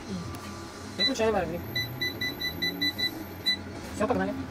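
An appliance beeps repeatedly as its buttons are pressed.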